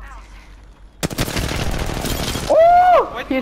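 Rapid gunfire rattles in a quick burst.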